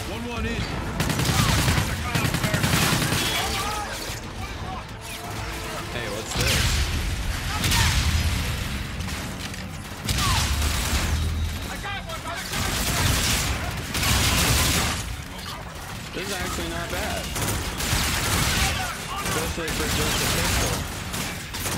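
Gunfire and explosions from a video game boom in bursts.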